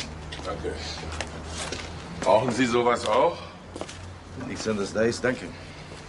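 Footsteps scrape on pavement.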